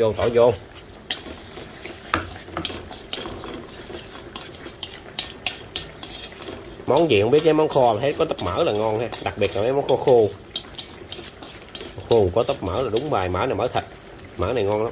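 Food sizzles gently in hot oil.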